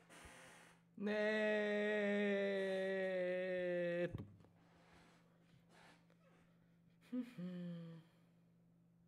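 A young woman lets out a long, drawn-out cry close to a microphone, then a short one.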